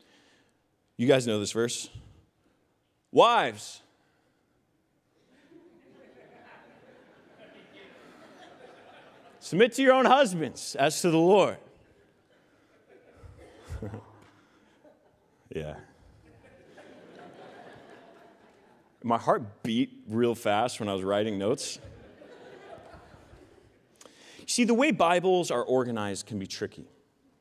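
A man speaks with animation through a microphone in a large hall, in short bursts.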